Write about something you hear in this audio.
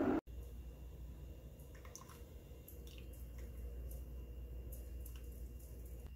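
Creamer pours softly into a cup of coffee.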